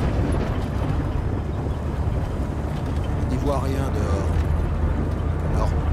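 A deep engine rumbles steadily.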